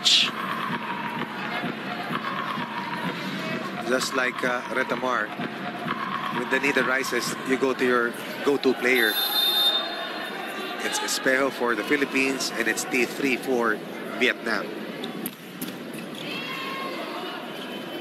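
A volleyball is struck hard with a sharp smack.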